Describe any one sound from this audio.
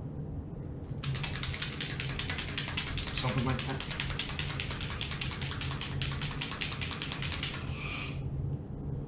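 Thread rasps rapidly as it is wound by hand.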